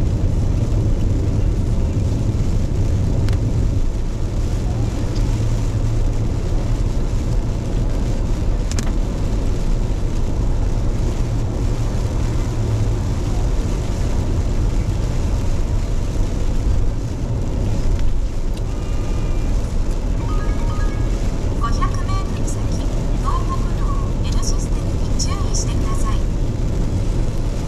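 Raindrops patter on a windscreen.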